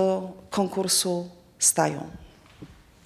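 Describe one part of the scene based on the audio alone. A middle-aged woman speaks calmly into a microphone close by.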